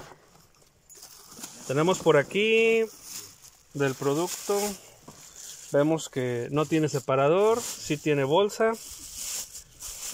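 A plastic bag rustles and crinkles as hands handle it.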